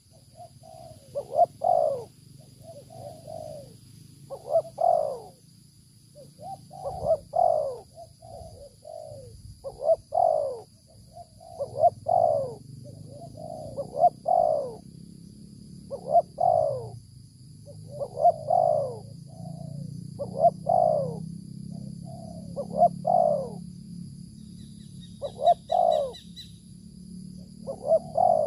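A dove coos close by in a soft, repeating, rolling call.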